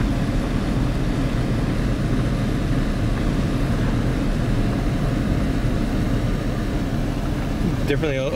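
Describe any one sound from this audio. Tyres roll over a gravel road.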